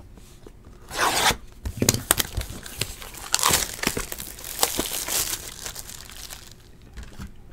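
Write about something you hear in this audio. Plastic wrapping crinkles and rustles as a box is handled.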